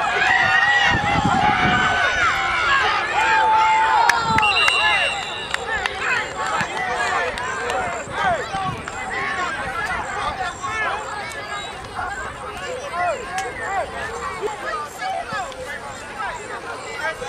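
A crowd of spectators cheers and shouts excitedly outdoors.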